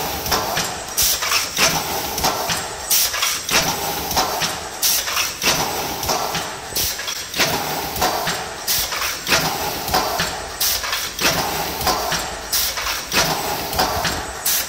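An industrial machine clanks and hisses steadily with a rapid rhythmic clatter.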